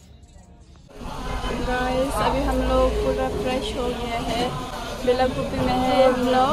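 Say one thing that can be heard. A young woman talks animatedly, close to a microphone.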